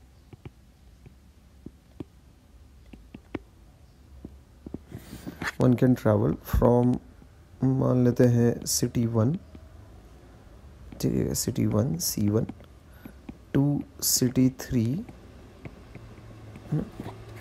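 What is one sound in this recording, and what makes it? A stylus taps and scratches on a tablet.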